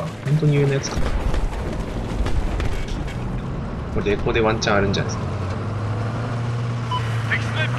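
A vehicle engine rumbles low and steady close by.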